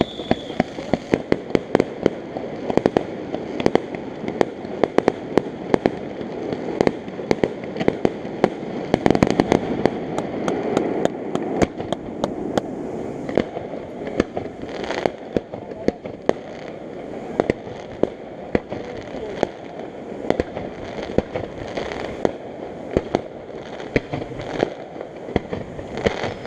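Fireworks pop and crackle in rapid bursts some distance away.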